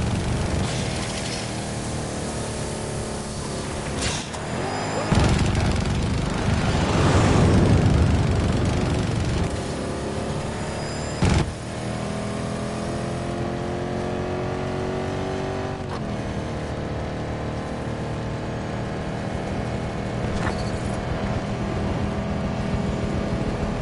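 A vehicle engine drones.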